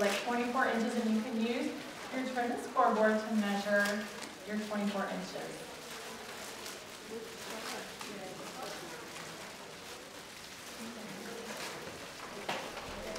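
Thin wire crinkles softly as hands twist and wrap it.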